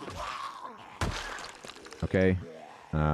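A blunt weapon thuds against a body.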